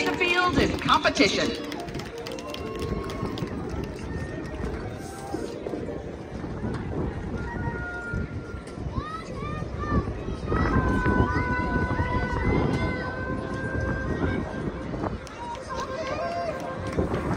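A marching band plays outdoors in a large open stadium.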